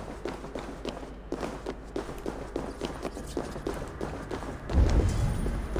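Footsteps run quickly over a stone floor.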